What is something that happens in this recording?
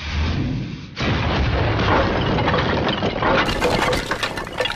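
A loud explosion blasts.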